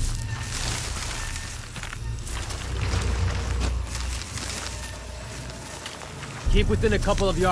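Dense leaves rustle as someone pushes through undergrowth.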